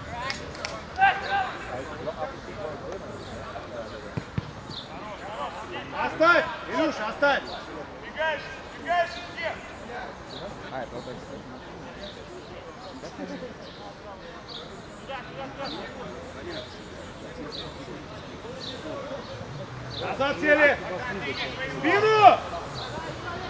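Young men shout to each other outdoors, some distance away.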